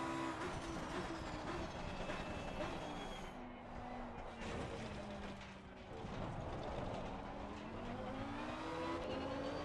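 A race car engine drops in pitch as the car brakes and downshifts for a corner.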